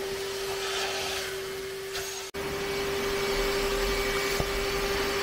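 A vacuum hums with a steady whine.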